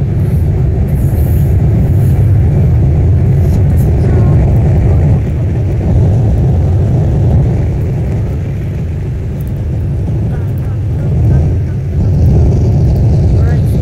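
A jet engine roars steadily with a deep rumble.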